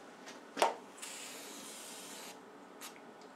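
An aerosol can hisses as it sprays.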